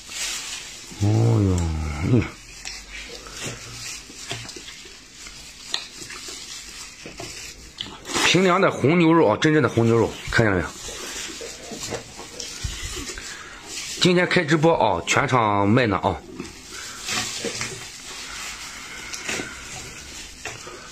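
Wet, tender meat squelches and tears apart in gloved hands.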